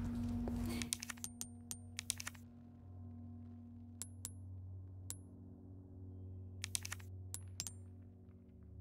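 Short electronic menu ticks sound several times.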